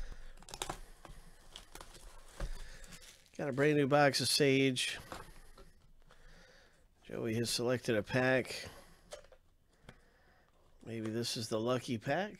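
Foil card packs and a cardboard box rustle as they are handled.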